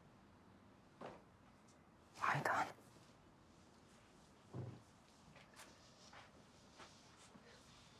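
Footsteps cross a room.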